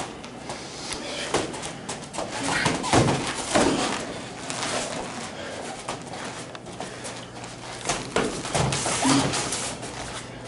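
Hands and arms slap against each other in quick blocks.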